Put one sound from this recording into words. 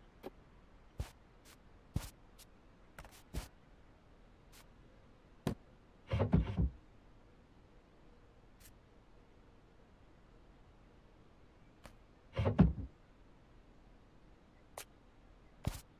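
Short soft clicks sound now and then.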